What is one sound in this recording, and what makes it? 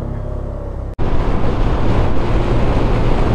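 Wind rushes loudly past a fast-moving motorcycle.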